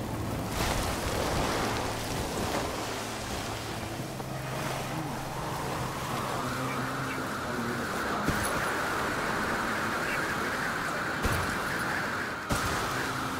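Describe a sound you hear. A snowboard carves and hisses across snow.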